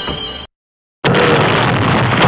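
A loud explosion roars.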